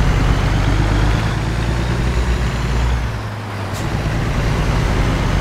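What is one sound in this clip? A truck's diesel engine rumbles steadily as it drives along.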